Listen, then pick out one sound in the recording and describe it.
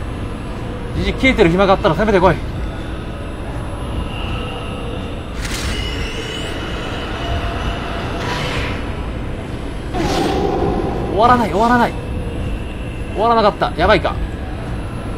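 Ghostly voices wail in short eerie bursts.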